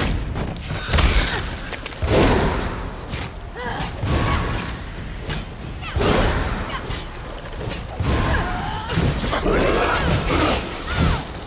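A large creature shrieks and hisses.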